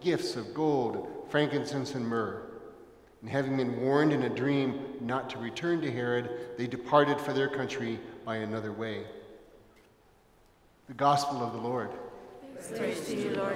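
An elderly man chants or sings through a microphone in a large echoing hall.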